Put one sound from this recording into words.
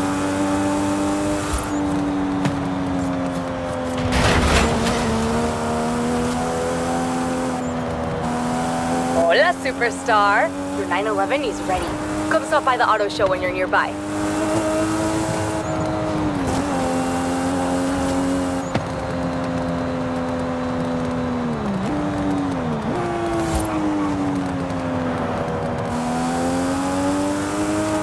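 A car engine roars steadily at high speed, dropping briefly as the car slows and then rising again.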